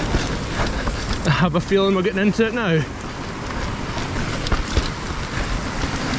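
Bike tyres rattle and crunch over a rocky trail.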